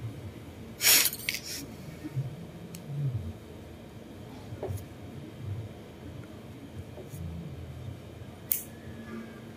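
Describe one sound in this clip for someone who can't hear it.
Cuticle nippers snip at a toenail.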